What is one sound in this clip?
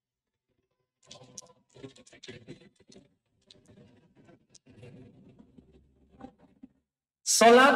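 Paper rustles and crinkles softly.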